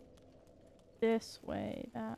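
A young woman speaks with animation, close to a microphone.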